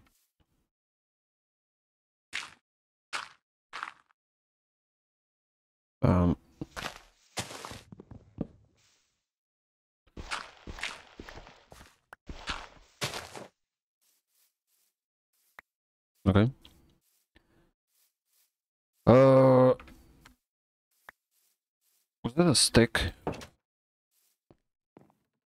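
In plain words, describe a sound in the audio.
Footsteps patter on the ground.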